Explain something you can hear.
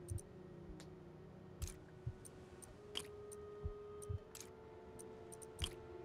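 Soft electronic blips and clicks sound as pieces are picked up and placed.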